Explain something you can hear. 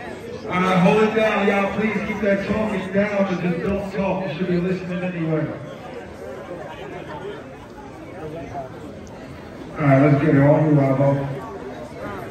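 A man raps forcefully through a loudspeaker microphone.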